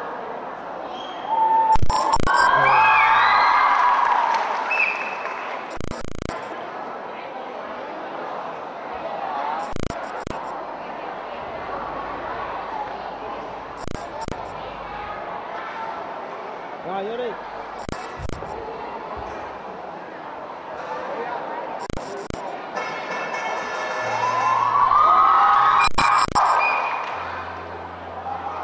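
A large audience murmurs and chatters in an echoing hall.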